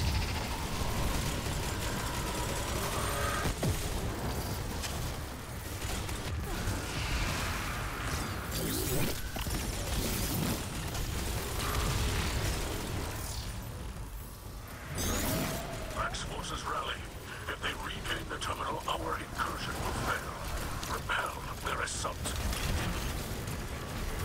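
Explosions burst loudly now and then.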